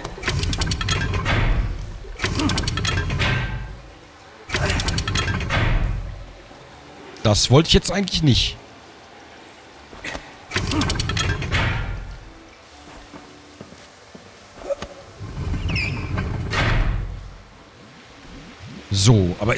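Water gushes through pipes in repeated bursts.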